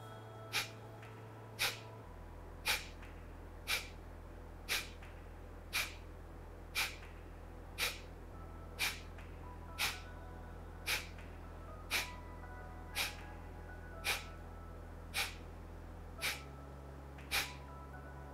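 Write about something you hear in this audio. A woman breathes out sharply through her nose in a steady rhythm, about once a second, close to a microphone.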